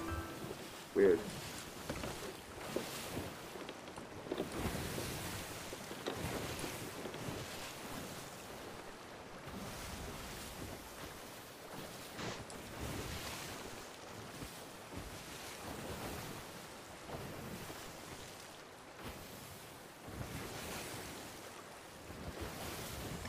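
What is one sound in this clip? Stormy sea waves roar and crash.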